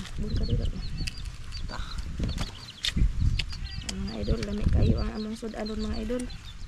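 Crab shells crack and snap as they are broken open by hand.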